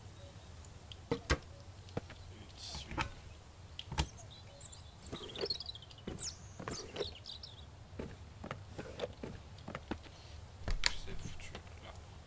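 A cabinet door opens with a click.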